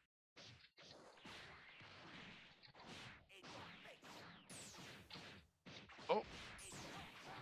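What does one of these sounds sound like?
Punches and kicks land with sharp hits.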